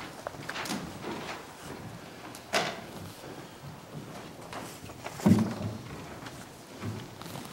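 Paper rustles as sheets are handled close by.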